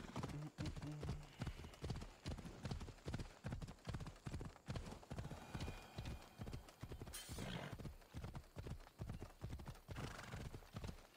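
A horse gallops with rhythmic hoofbeats on a dirt track.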